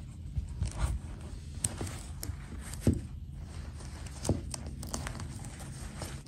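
Hands rustle a doll's tulle skirt and fabric.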